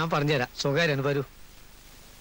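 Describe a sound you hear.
A man speaks in short, tense phrases close by.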